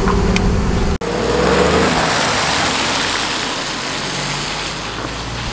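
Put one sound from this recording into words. A car drives past on a wet road, tyres splashing.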